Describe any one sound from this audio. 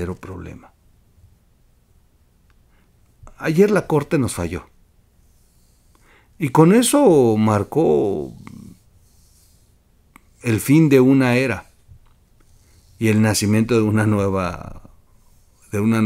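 A middle-aged man speaks close to a microphone in short bursts, with long pauses between them.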